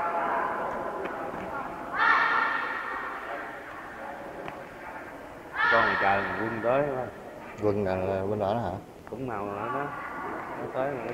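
Young children shout sharply as they spar, echoing in a large hall.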